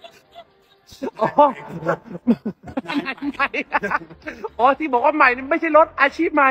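A man talks excitedly and laughs close by.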